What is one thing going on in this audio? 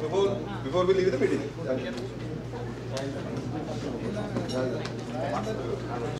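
A crowd of people murmurs and chatters in the background.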